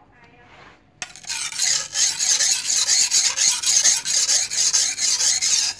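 A blade scrapes back and forth over a sharpening stone in quick, steady strokes.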